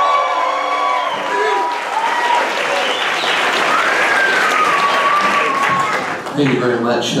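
A band plays acoustic guitars, banjo and upright bass.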